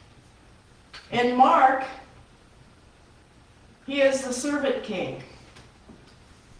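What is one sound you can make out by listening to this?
An elderly woman speaks slowly into a microphone, with long pauses, in a room with a slight echo.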